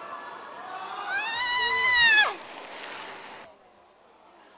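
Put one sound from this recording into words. A bicycle rolls past close by, its tyres humming on concrete.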